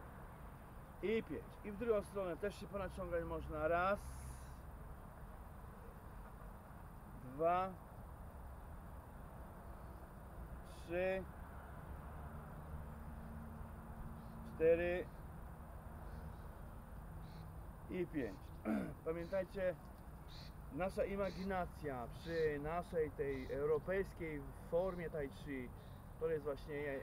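An elderly man speaks with animation outdoors, in bursts between pauses.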